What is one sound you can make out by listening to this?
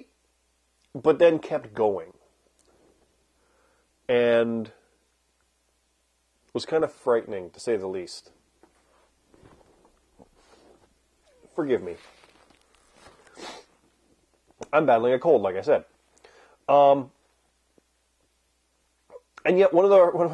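A man talks calmly and closely into a microphone, pausing now and then.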